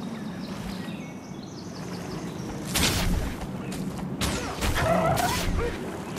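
A magic spell whooshes.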